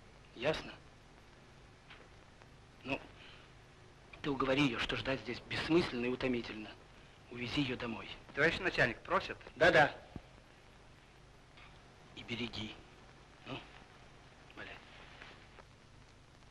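A man speaks sternly and close by.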